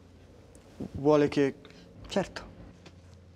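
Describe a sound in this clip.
A man answers calmly and quietly nearby.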